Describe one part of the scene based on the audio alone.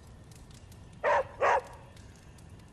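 A dog barks twice.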